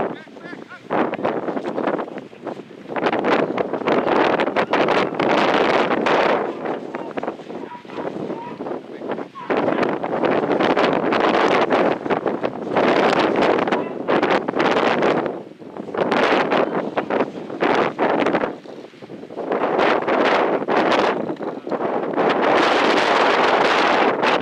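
Wind gusts and buffets loudly outdoors.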